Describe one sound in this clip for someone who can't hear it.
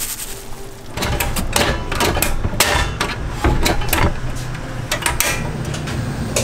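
A portable gas stove's igniter clicks several times.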